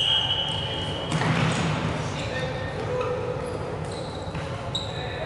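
Shoes squeak sharply on a hard floor in a large echoing hall.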